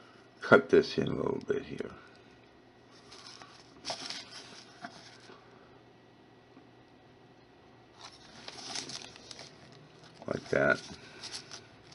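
A wooden tool scrapes and presses soft clay.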